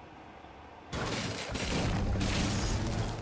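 A pickaxe strikes and breaks a metal object with loud crunching thuds.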